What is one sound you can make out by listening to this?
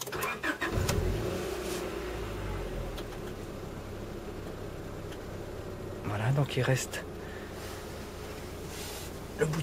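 A car engine idles steadily with a low rumble.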